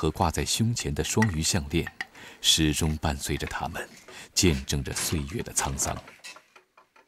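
A wooden loom clacks rhythmically as it weaves.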